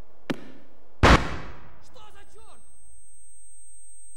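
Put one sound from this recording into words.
A grenade explodes with a loud blast that rumbles away.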